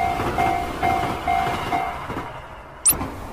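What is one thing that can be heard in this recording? A train rushes past with a rumbling clatter.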